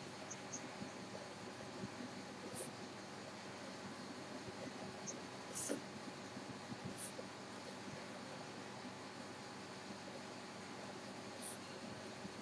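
A marker squeaks and scratches across paper.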